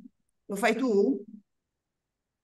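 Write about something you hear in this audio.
An elderly woman speaks briefly over an online call.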